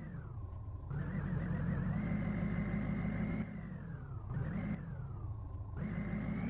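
Truck tyres crunch over rocky dirt.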